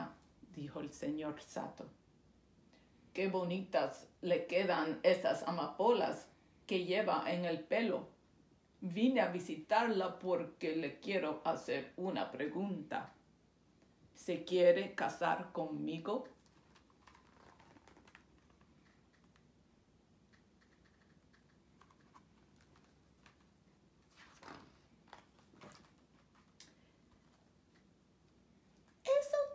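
A woman reads aloud calmly and expressively, close by.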